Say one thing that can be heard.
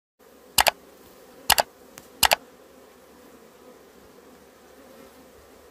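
Bees buzz steadily around a hive entrance.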